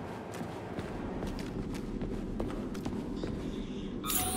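Footsteps patter on a hard floor.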